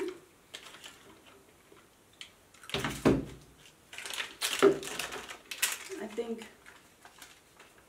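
Plastic wrapping crinkles in someone's hands.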